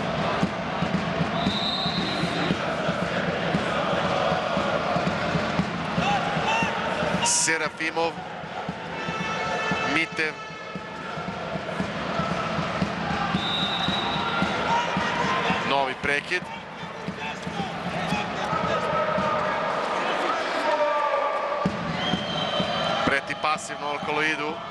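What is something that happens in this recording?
A crowd cheers and chants loudly in an echoing sports hall.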